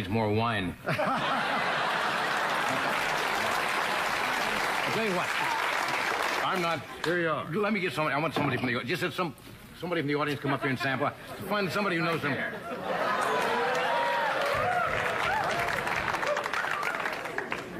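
A studio audience laughs loudly.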